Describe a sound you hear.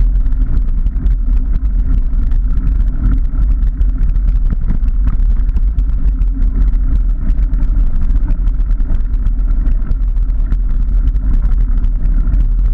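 Wind rumbles loudly across a microphone outdoors.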